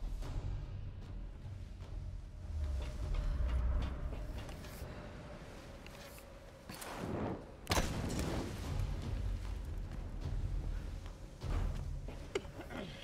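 A man talks into a microphone, close by.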